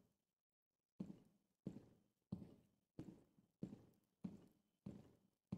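Footsteps thud on a hard floor at a steady walking pace.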